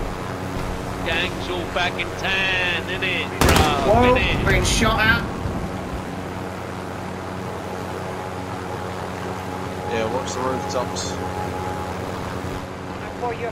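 A helicopter's engine and rotor drone steadily close by.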